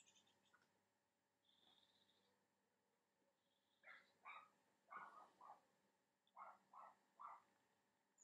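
A paintbrush dabs softly against a canvas.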